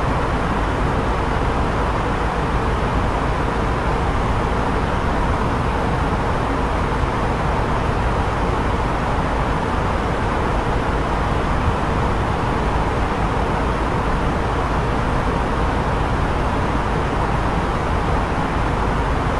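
A jet airliner's engines and airflow roar steadily.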